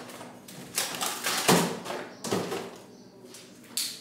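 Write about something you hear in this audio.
A carton is set down on a shelf.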